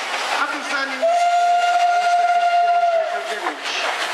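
A steam locomotive whistle blows a long, steady note.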